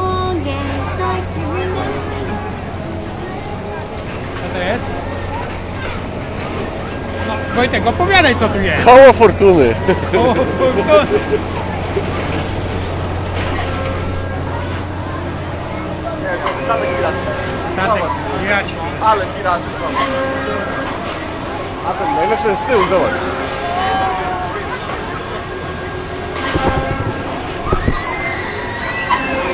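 People talk and call out nearby outdoors.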